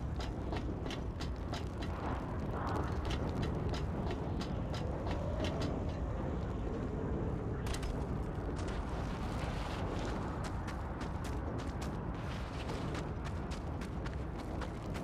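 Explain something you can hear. Footsteps crunch quickly on gravel and sand.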